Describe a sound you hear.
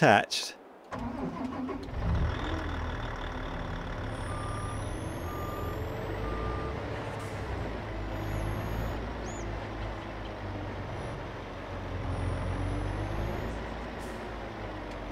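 A heavy truck engine rumbles steadily as the truck drives slowly.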